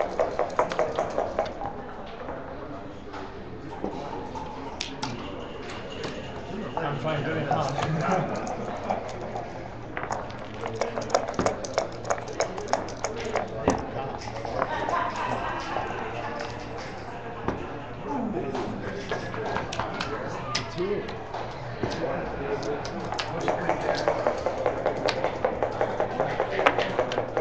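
Checkers click as they are moved on a wooden board.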